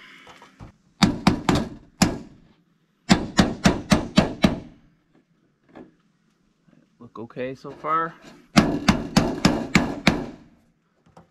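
A hammer taps nails in quick blows.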